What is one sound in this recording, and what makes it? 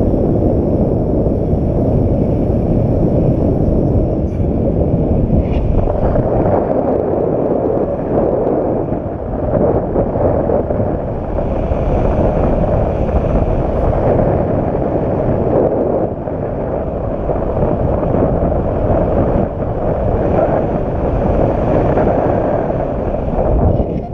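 Strong wind buffets loudly and steadily.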